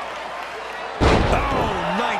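A wrestler slams hard onto the mat with a heavy thud.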